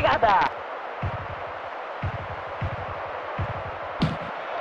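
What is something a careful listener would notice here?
A football is kicked with short dull thumps.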